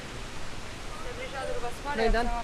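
A young woman talks nearby.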